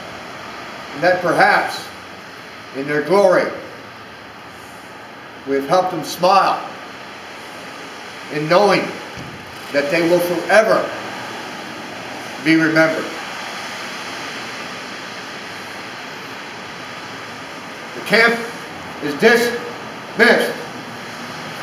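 An elderly man speaks slowly in short phrases, close by, with long pauses.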